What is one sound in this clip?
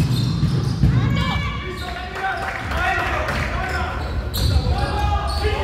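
Young men shout and call out across the court.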